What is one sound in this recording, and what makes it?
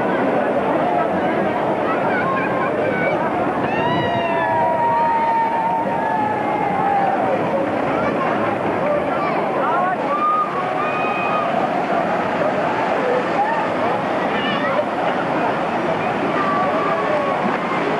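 Children and women shout and squeal with excitement nearby.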